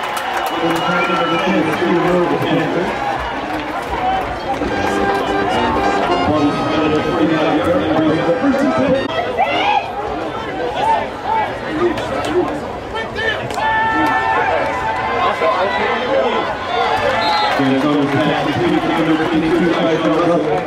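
A crowd of players and spectators chatters and shouts outdoors.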